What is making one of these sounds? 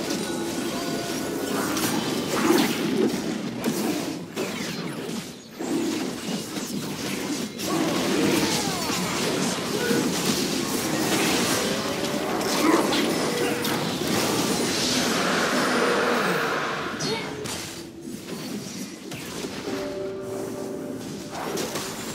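Weapons strike and impacts thud in a video game fight.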